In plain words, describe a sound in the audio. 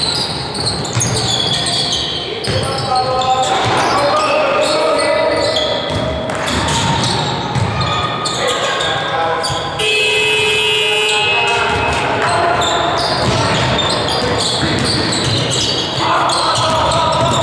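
Basketball players' sneakers squeak on a hardwood court in a large echoing gym.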